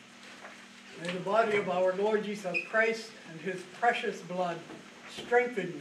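An elderly man speaks calmly and solemnly, heard through a microphone in an echoing room.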